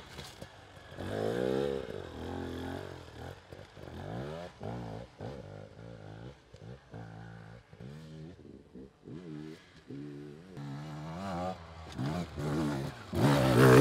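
Another enduro dirt bike revs in the distance.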